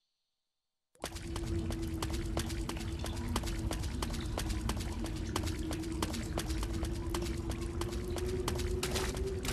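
Footsteps crunch steadily through undergrowth.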